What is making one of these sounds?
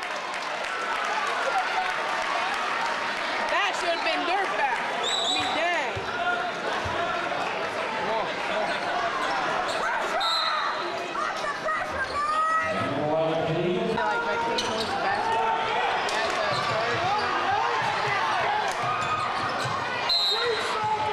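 A large crowd chatters and cheers, echoing in a big hall.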